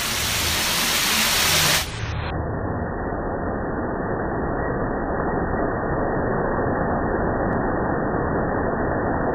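Heavy rain and hail pour down steadily outdoors.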